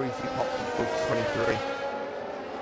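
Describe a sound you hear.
Other racing car engines roar past close by.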